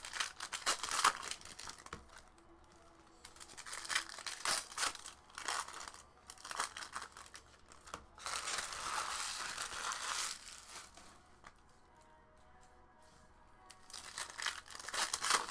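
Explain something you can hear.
Foil card packs crinkle and rustle as hands tear them open.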